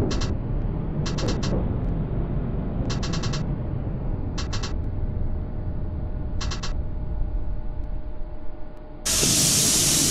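A tram rumbles along the rails.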